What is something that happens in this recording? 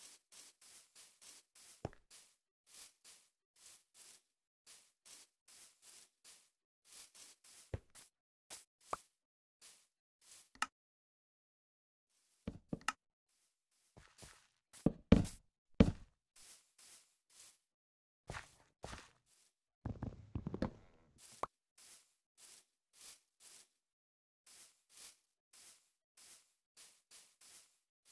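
Footsteps on grass patter in a block-building video game.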